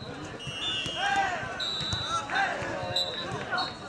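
Young men shout and call out outdoors.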